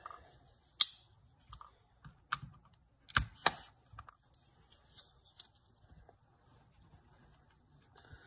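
A cardboard box is tapped and handled with soft scrapes.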